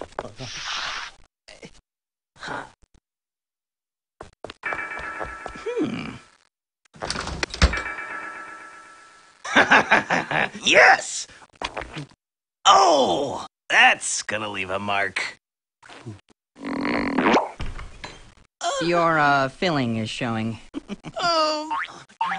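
A cartoon character speaks in a high, excited voice.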